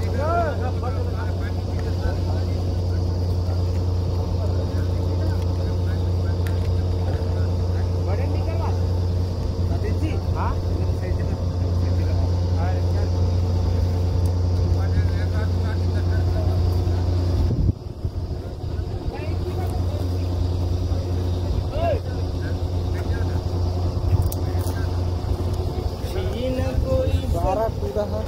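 Men talk nearby in raised voices over the engine.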